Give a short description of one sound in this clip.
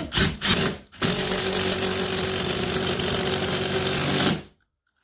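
A cordless drill whirs steadily as it drives a screw.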